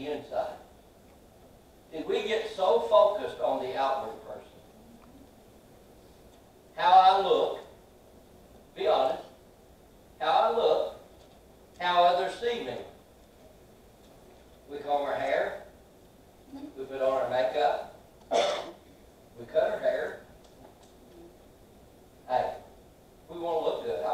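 An older man preaches slowly through a microphone in an echoing hall, pausing between phrases.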